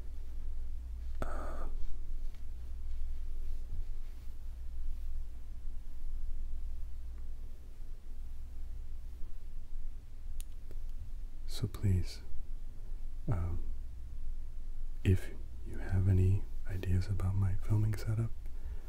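Hands squeeze and rub a soft plush ball with a faint rustle.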